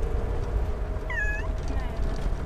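A cat meows loudly up close.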